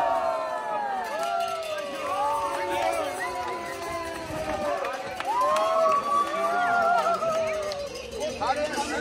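A group of men and women chant and sing loudly together outdoors.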